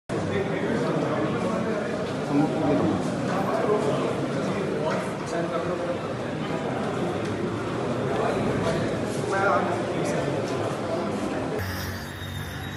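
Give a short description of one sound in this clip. A crowd of men talks and murmurs in an echoing hallway.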